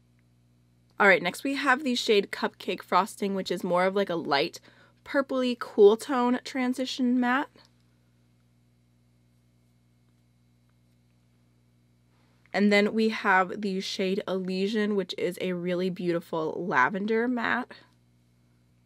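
A young woman talks calmly and closely into a microphone.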